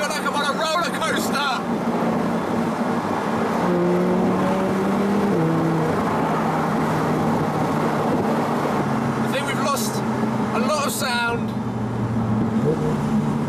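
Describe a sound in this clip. A car engine hums steadily, its pitch shifting as it changes gear.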